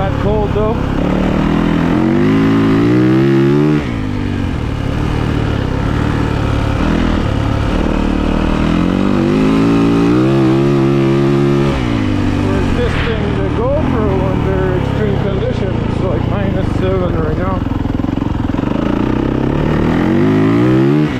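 A four-stroke dirt bike revs hard and shifts up through the gears.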